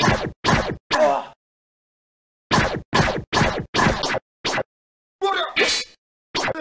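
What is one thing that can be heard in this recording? Heavy punches and blade strikes land with sharp, repeated thuds.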